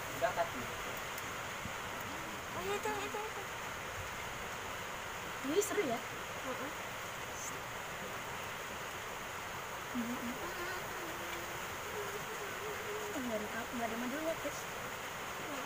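A swarm of bees buzzes steadily close by.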